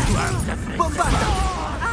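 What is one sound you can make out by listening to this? A magical energy blast crackles and booms.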